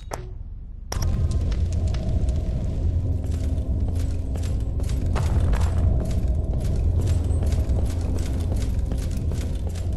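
Heavy footsteps crunch on snow.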